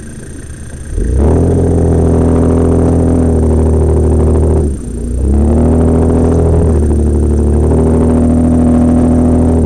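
An off-road vehicle's engine roars loudly and its pitch rises and falls as it drives over rough ground.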